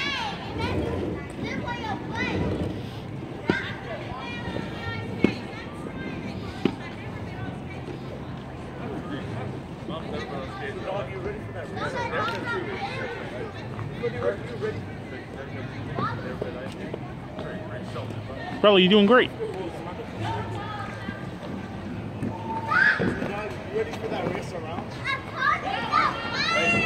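People chat nearby outdoors.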